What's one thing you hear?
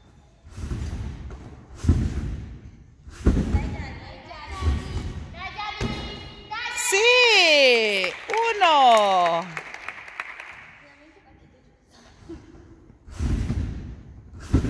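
A gymnast lands with dull thuds on soft mats in an echoing hall.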